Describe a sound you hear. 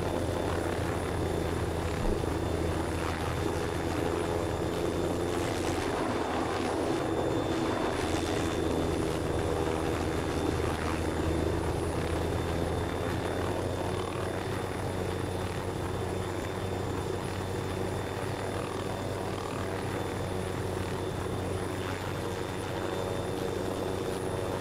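A helicopter's rotor drones steadily.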